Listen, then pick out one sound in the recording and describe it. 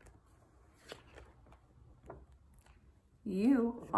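A paper book page is turned.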